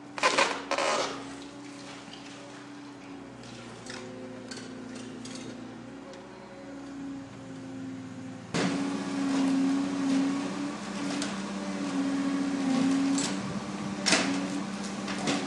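Masonry and timber crash and crack as an excavator tears down a brick building.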